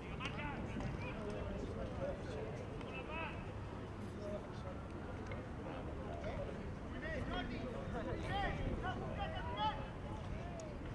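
Young boys shout and call out to each other outdoors, at a distance.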